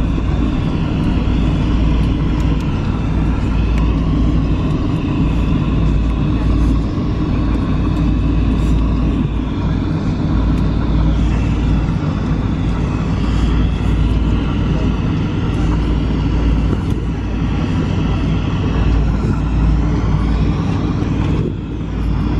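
Jet engines drone steadily inside an airliner cabin.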